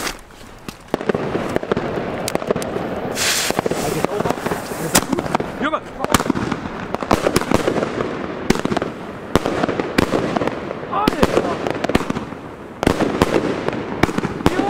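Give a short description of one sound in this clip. A firework fountain hisses steadily.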